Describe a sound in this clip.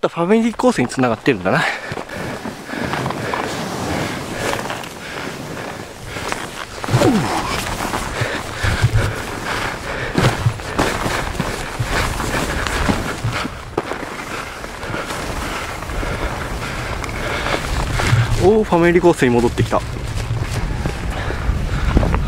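Wind buffets loudly, as outdoors while moving fast.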